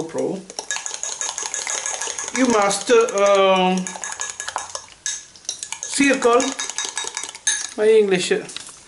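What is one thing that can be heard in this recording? A whisk beats quickly against a glass, clicking and tapping.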